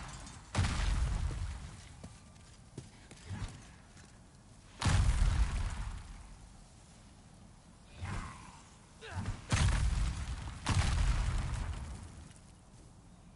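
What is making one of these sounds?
Footsteps crunch on stone as a knight walks.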